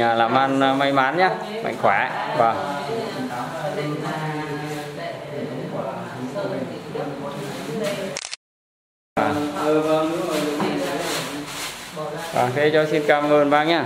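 An elderly man speaks with animation close by.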